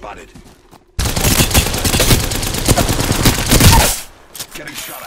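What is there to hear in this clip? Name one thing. A rapid-fire gun shoots a long, loud burst.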